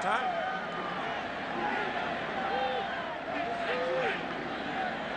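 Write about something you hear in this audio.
A large crowd roars and cheers steadily in a big open stadium.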